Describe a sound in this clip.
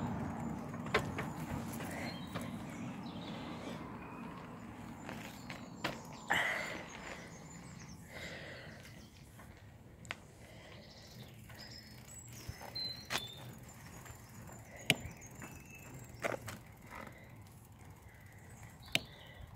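Wheels knock sharply over bumps in the path.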